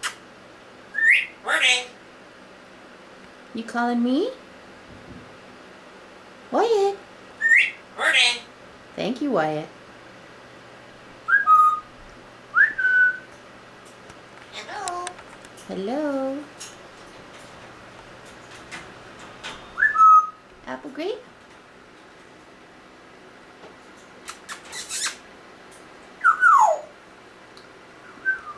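A parrot whistles and squawks in short bursts close by.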